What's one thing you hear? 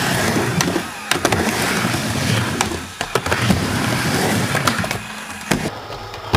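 Skateboard wheels clack and knock against the edge of a wooden ramp.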